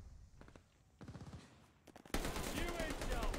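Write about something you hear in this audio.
Rapid gunfire rattles in a game.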